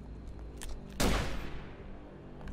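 A gunshot bangs sharply and rings out.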